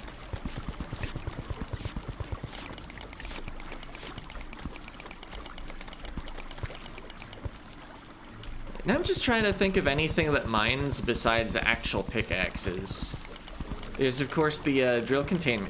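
Digging sounds from a video game tick rapidly, over and over.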